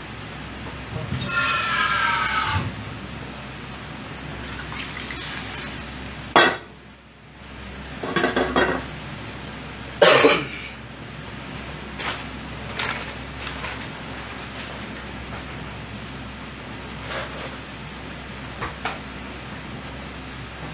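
A sauce bubbles and sizzles in a pan.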